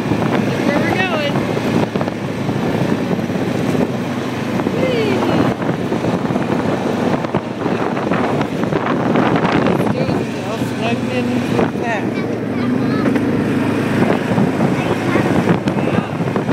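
A young child talks close by.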